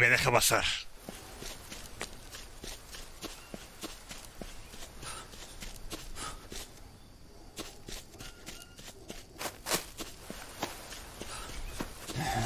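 Footsteps crunch softly on leafy ground.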